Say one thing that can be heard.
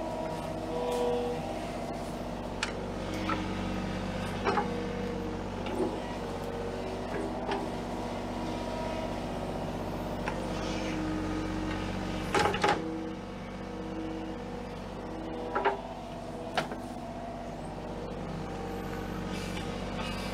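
A diesel engine drones steadily nearby.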